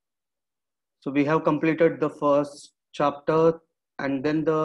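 A man speaks calmly through a microphone, as on an online call.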